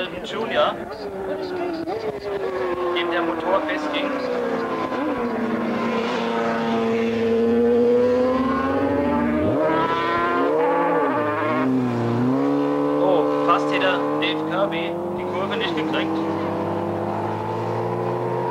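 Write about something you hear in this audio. Racing motorcycle engines roar and rev loudly as the bikes speed past.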